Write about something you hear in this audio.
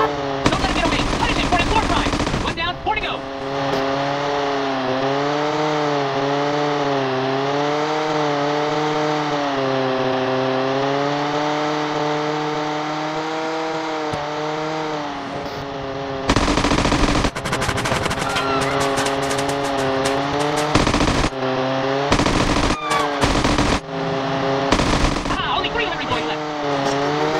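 A toy plane's engine buzzes steadily, rising and falling in pitch.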